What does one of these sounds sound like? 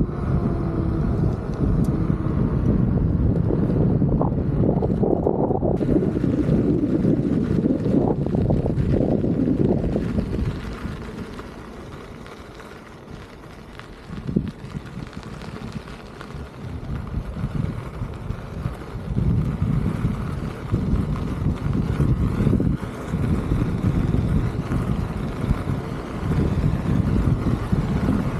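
Small wheels roll and rumble over rough pavement.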